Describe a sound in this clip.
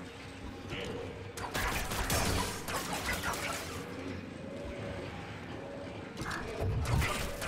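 A glowing energy blade hums and swooshes through the air.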